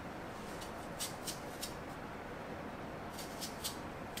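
A knife slices through an apple with soft crisp cuts.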